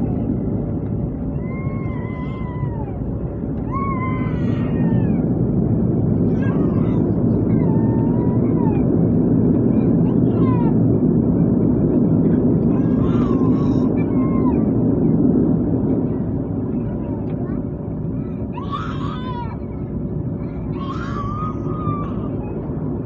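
A propeller engine drones loudly and steadily, swelling and then easing off.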